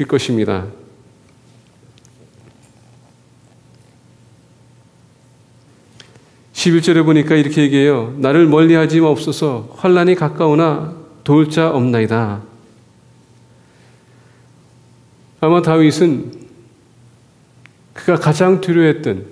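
A man speaks calmly through a microphone in a large echoing hall, pausing between phrases.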